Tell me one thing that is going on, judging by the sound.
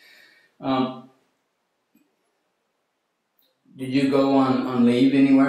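An elderly man speaks calmly, close by.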